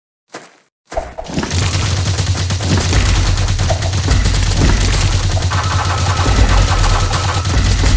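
Loud, dense game music plays.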